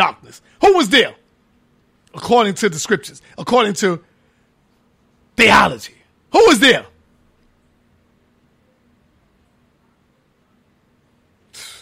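A man speaks in short bursts with pauses, close to a microphone.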